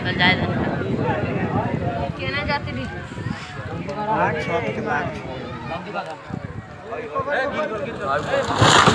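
Several men talk excitedly nearby.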